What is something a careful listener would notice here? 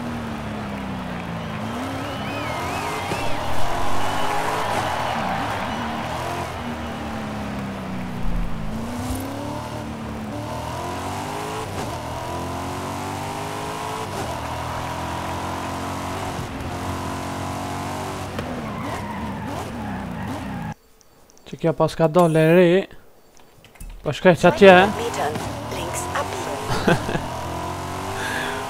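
A car engine revs loudly and roars, rising and falling in pitch as gears shift.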